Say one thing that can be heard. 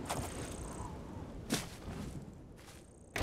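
Horse hooves thud on the ground.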